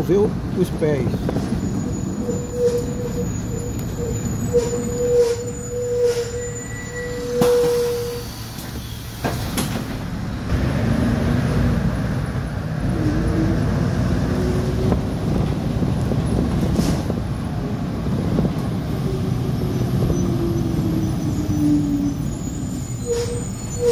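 A vehicle's engine rumbles steadily as it drives along a street.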